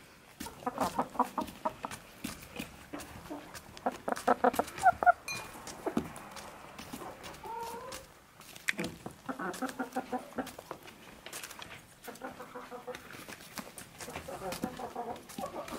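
Chickens peck at food with quick taps.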